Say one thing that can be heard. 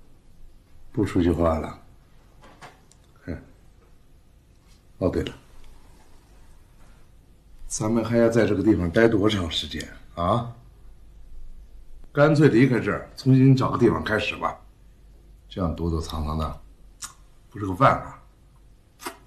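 A middle-aged man speaks in a low voice, close by.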